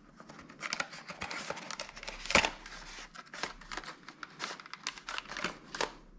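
Plastic packaging crinkles and rustles as hands handle it.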